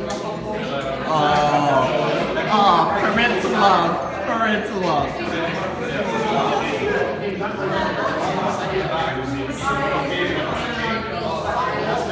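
Several young men and women talk and laugh together close by.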